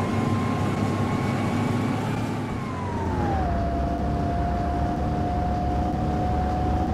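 A bus engine hums and whines steadily, its pitch dropping once as it shifts gear.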